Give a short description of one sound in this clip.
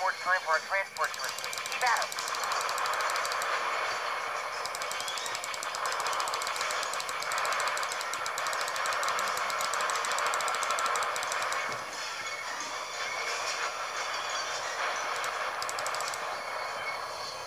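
A craft's engine roars steadily.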